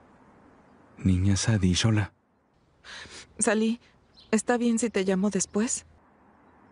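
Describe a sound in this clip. A woman talks calmly on a phone.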